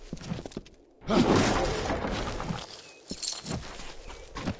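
A pickaxe strikes rock with a loud crunch.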